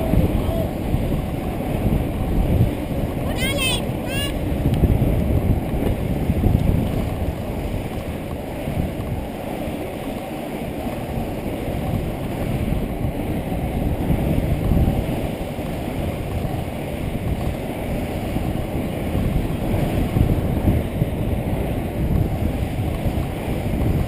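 Wind buffets a helmet-mounted microphone.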